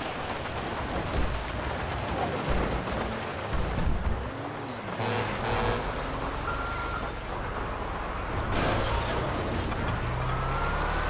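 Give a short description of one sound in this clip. A large truck engine rumbles and idles.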